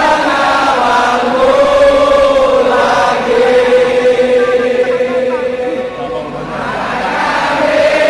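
A large crowd of fans sings and chants loudly together in a big open stadium.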